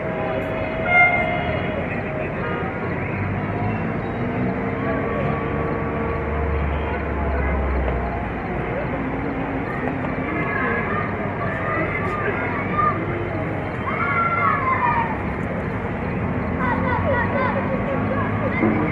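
A diesel locomotive engine rumbles steadily as a train slowly approaches.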